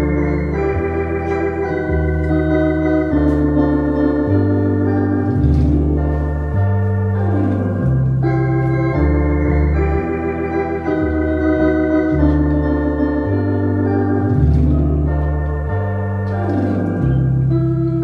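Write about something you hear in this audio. An electronic organ plays a lively tune with a steady bass line.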